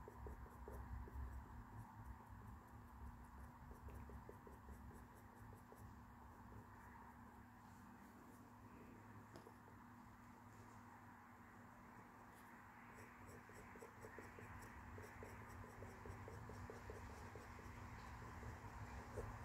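A pencil scratches softly against a hard surface.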